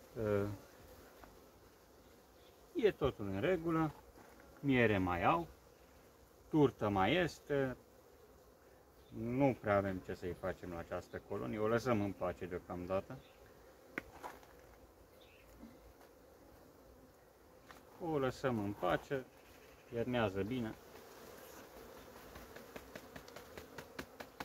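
Bees buzz softly.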